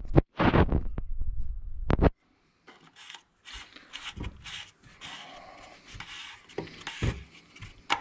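A plastic cap scrapes and clicks as it is twisted off.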